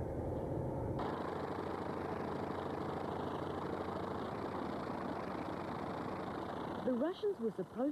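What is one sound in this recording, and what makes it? An aircraft propeller spins with a loud roar.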